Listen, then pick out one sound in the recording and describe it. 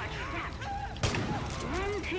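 A pistol fires a single loud shot.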